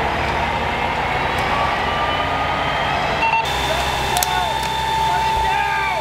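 A fire engine's motor idles with a low steady rumble.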